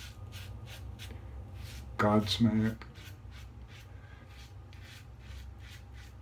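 A razor scrapes through stubble in short, repeated strokes.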